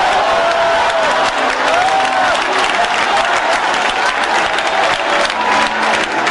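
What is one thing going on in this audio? A man sings loudly into a microphone.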